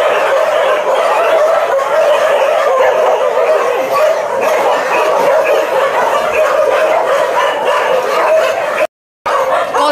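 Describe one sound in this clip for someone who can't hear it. Many dogs yelp and whine together.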